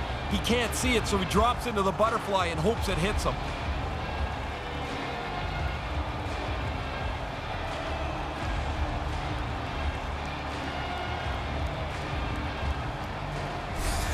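A large crowd murmurs steadily in an echoing arena.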